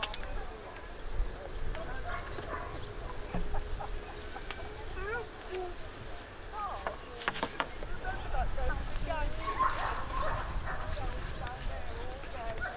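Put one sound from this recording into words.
Young children talk and chatter nearby.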